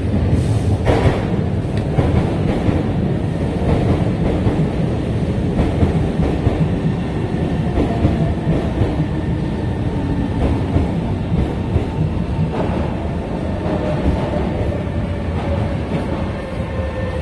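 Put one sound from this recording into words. A train rumbles into the station and slows to a stop.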